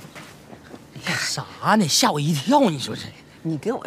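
A woman speaks cheerfully close by.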